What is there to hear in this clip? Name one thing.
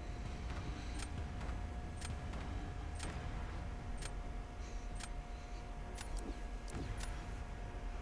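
A game timer beeps once a second as it counts down.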